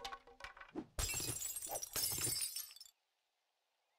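Wood splinters and crashes apart.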